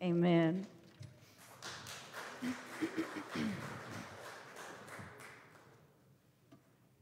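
A small audience claps in a large hall.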